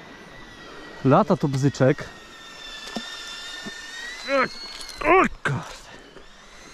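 A man speaks outdoors in short bursts nearby.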